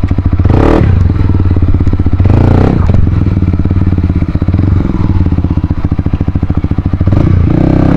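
A dirt bike engine idles and revs loudly close by.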